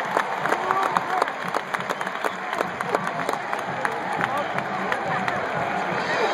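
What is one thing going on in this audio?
A crowd claps in scattered bursts.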